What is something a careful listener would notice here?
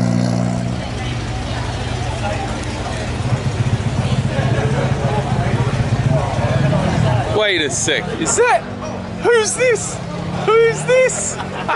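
Many people chatter in a crowd.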